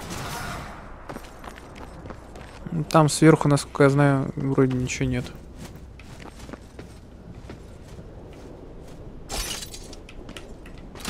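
Heavy armoured footsteps clank on stone at a steady pace.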